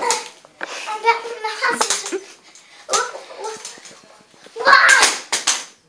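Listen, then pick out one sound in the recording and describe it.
Metal crutches clack on the floor.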